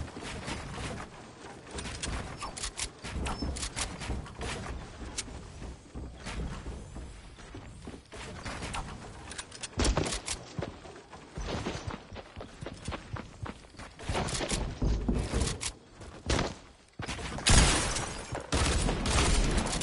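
Wooden walls and ramps snap into place in quick, repeated clacks.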